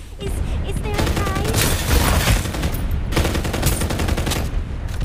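Gunfire from a rifle rings out in rapid bursts.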